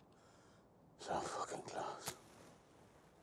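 A man speaks in a low, calm voice close by.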